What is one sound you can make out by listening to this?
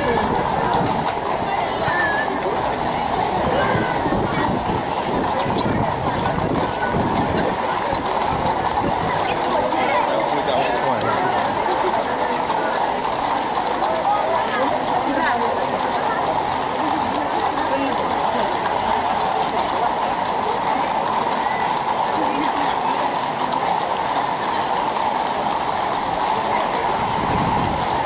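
Many horses' hooves clop steadily on pavement.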